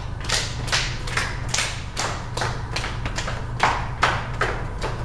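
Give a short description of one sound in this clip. An older woman calls out instructions in a large, echoing room.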